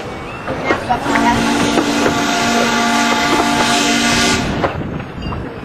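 A steam locomotive whistle blows loudly for a few seconds.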